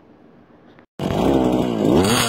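A string trimmer whines loudly.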